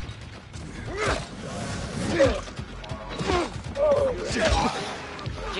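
A blade strikes flesh with heavy thuds.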